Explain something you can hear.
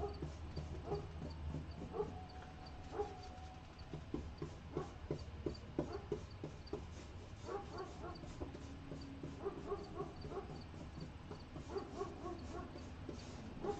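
A paintbrush dabs and scrapes softly on canvas.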